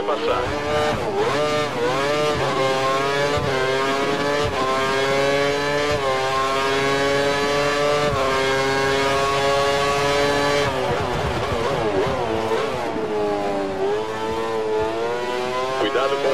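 A racing car engine screams at high revs, rising through the gears and dropping as it brakes into a corner.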